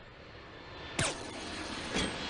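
A gunshot rings out with a loud bang.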